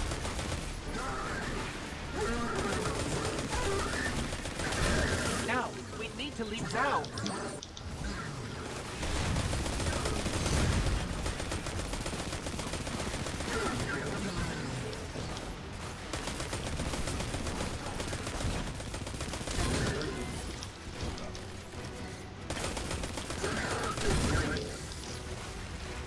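Rapid gunfire rattles and booms.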